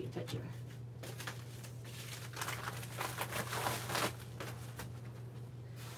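A large paper envelope rustles and crinkles.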